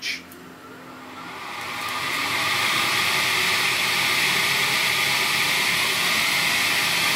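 A small device hisses steadily as it puffs out mist.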